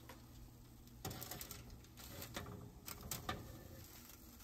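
Metal tongs rustle and scrape on crinkly foil.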